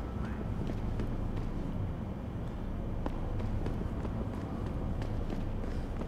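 Footsteps tread quickly on a hard concrete floor.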